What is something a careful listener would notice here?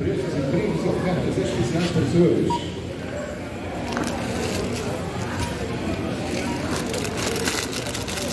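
Packages knock and rustle against a metal shopping cart.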